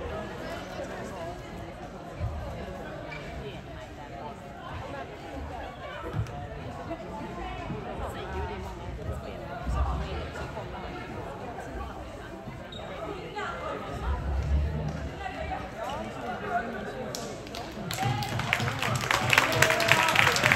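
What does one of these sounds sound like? Many young women chatter and call out at once in a large echoing hall.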